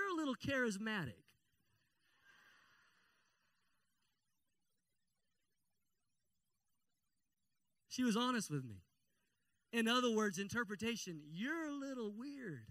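A man speaks with animation into a microphone, heard through loudspeakers, pausing between phrases.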